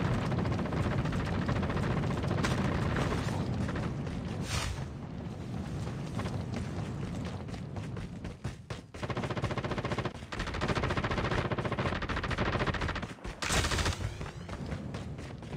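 Fire crackles and roars close by.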